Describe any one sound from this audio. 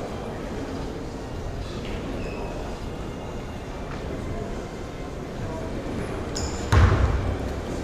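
A seated crowd murmurs and chatters in a large echoing hall.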